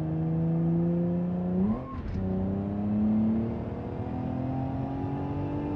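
A car engine hums steadily and rises in pitch as the car speeds up.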